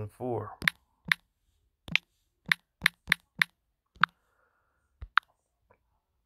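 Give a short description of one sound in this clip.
Phone keyboard keys click as they are tapped.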